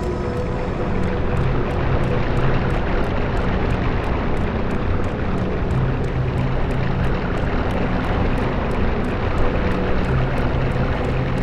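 Fire roars steadily.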